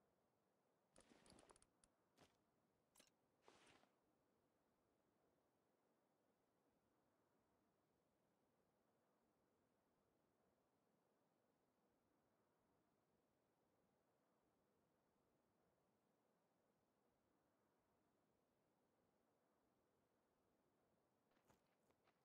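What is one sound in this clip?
Game menu clicks and chimes sound in short bursts.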